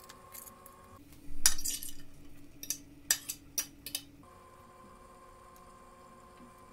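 Soup bubbles and simmers in a pot.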